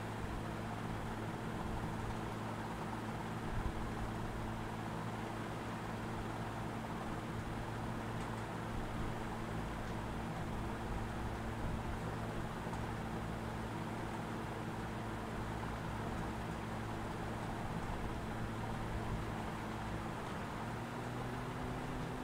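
A vehicle engine drones steadily as it drives along.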